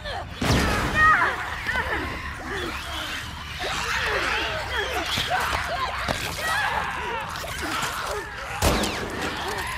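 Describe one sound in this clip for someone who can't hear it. A gunshot bangs sharply.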